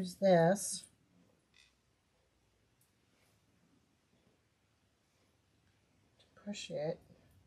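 A woman speaks briefly and calmly close by.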